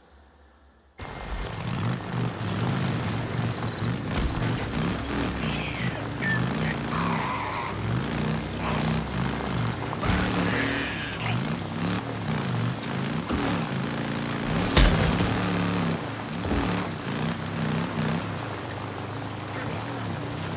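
A motorcycle engine revs and rumbles as it rides over rough ground.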